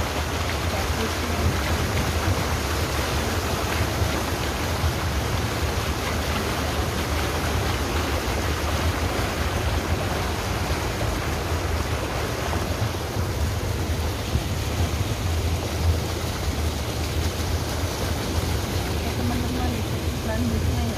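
A boat's outboard motor drones steadily close by.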